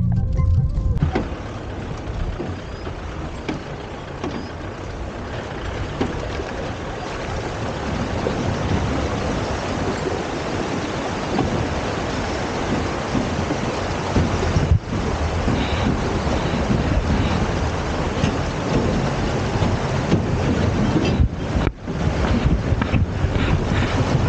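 Tyres crunch and rumble over a rocky riverbed.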